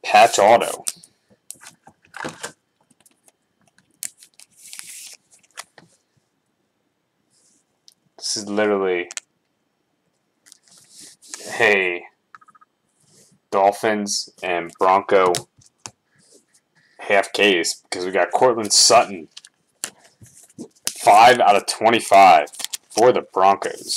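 Stiff cards slide and rustle between hands.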